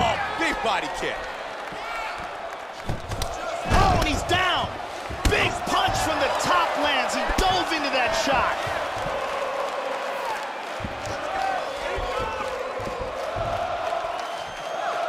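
A crowd murmurs and cheers steadily.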